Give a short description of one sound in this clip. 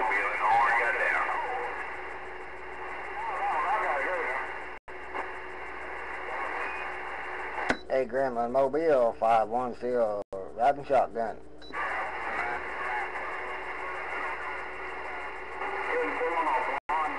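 A radio loudspeaker hisses with steady static.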